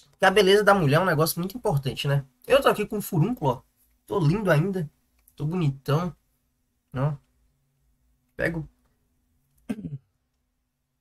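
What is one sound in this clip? A young man talks close to a microphone in a casual, expressive way.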